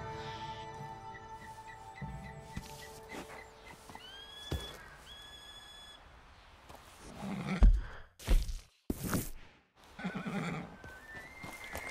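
A horse's hooves thud slowly on a dirt trail.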